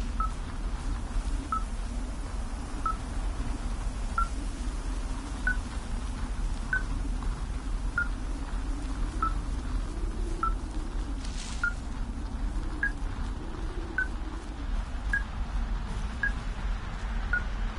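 A handheld device beeps in short, evenly spaced high pips.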